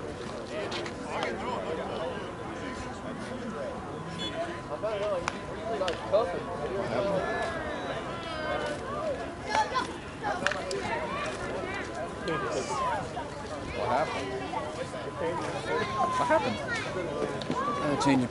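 Several men chat and call out across an open field, heard from a distance outdoors.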